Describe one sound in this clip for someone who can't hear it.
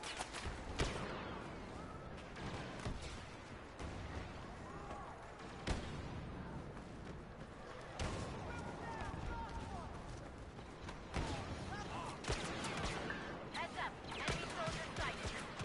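Laser blaster shots fire sharply now and then.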